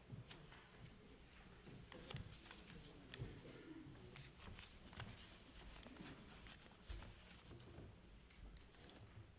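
Footsteps thud and knock on a wooden floor in a large echoing hall.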